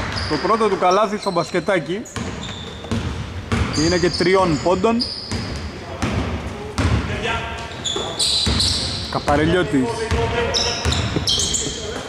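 Basketball shoes squeak sharply on a wooden court in a large echoing hall.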